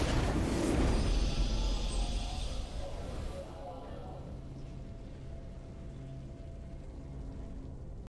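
A triumphant victory fanfare plays.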